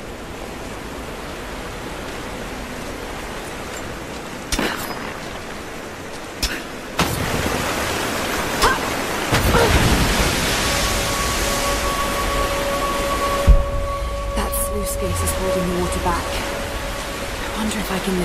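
Hands grab and scrape on stone ledges during a climb.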